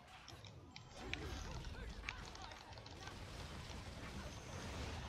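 Blows and slashes land on enemies in quick bursts of hits.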